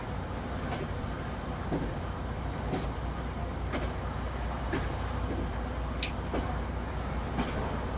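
A train rumbles steadily along the track at speed.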